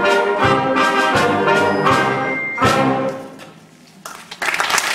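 A brass band plays a final chord in an echoing hall.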